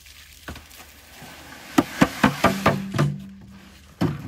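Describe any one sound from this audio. Wet sand slides and pours from a tipped wheelbarrow.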